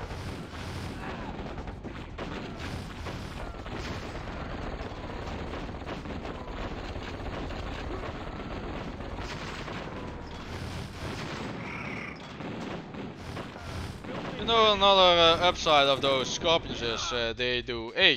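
Explosions boom and crackle amid gunfire.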